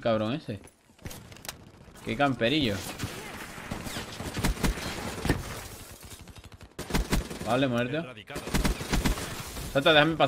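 Gunfire rattles in quick bursts from a video game.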